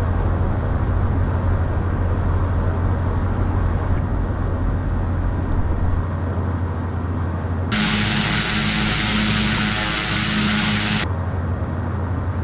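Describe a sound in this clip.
A single-engine turboprop drones in flight, heard from inside the cabin.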